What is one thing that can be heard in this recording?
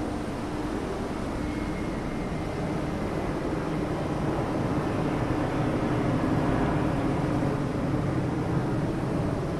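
An electric high-speed train rolls along at low speed, motors humming and wheels rumbling on the rails.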